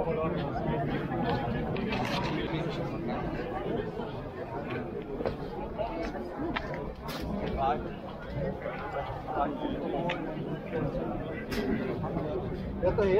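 A crowd of people murmurs and talks outdoors nearby.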